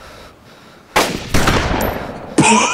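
A shotgun fires one loud blast.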